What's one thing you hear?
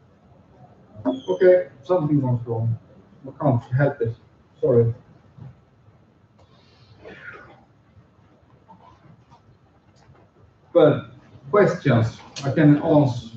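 A man speaks through a microphone with pauses.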